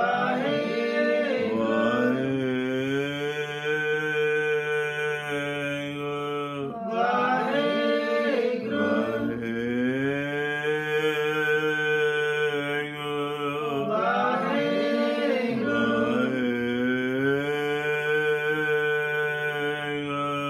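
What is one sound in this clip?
An elderly man sings a slow, drawn-out chant close by.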